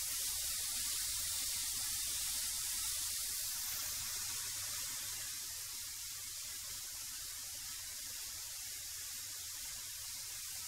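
A wood planer runs with a loud, steady whine.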